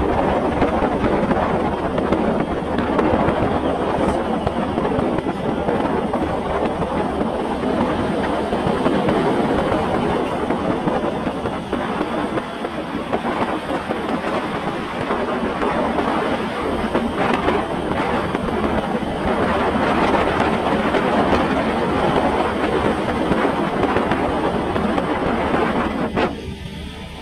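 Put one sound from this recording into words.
A motorbike engine hums steadily nearby.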